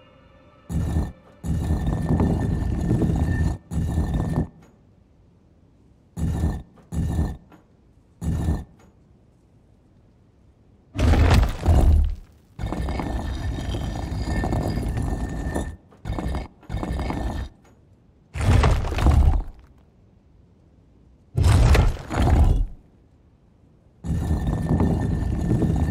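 Heavy stone dials grind and scrape as they turn, in repeated bursts.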